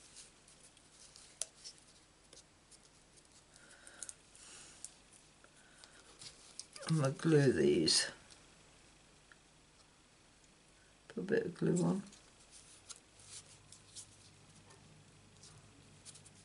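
Paper rustles and taps softly under hands.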